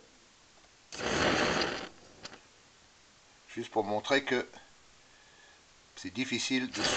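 A gas burner sputters and pops as its flame flickers out and relights.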